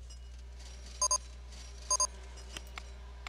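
A soft electronic chime rings twice.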